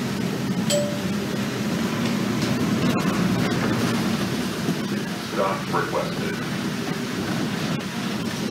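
A bus rattles and creaks over the road.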